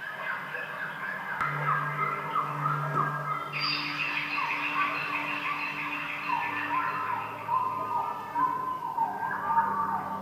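A synthesizer keyboard plays a melody.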